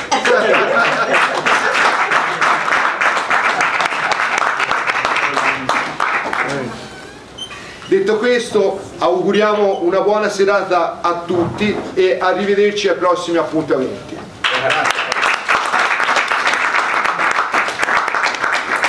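An elderly woman claps her hands.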